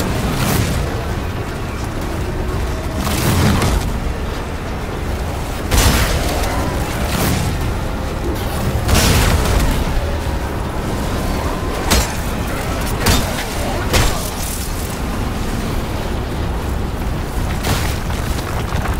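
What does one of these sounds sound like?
Loud gunshots and heavy blows crack in bursts.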